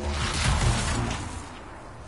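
Electric crackling zaps loudly.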